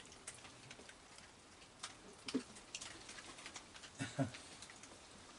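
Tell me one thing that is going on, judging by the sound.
A raccoon chews and crunches food with faint clicks.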